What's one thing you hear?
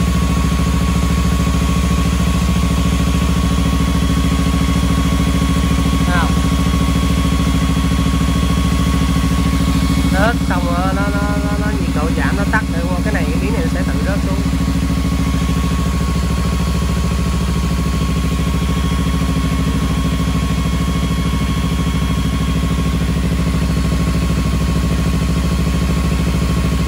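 A motorcycle engine idles with a steady, low rumble.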